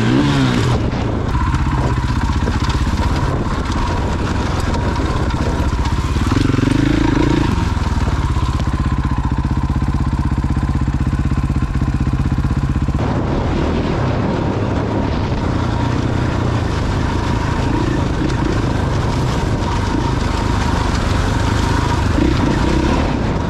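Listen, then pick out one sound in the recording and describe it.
A motorcycle engine revs and drones up close throughout.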